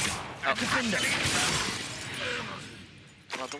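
A magic spell crackles and bursts loudly.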